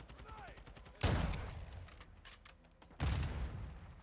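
A sniper rifle fires with loud, sharp bangs that echo briefly.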